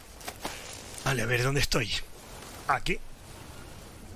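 A map case flaps open with a soft rustle.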